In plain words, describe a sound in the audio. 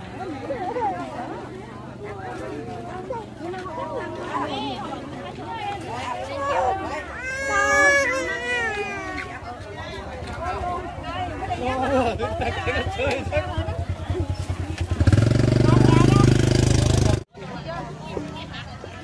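Women talk nearby, their voices overlapping.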